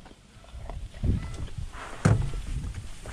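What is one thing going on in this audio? Dry reeds rustle and brush against the side of a boat.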